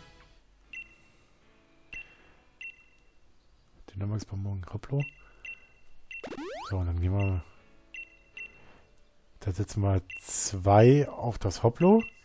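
Short electronic menu blips chime as choices are made.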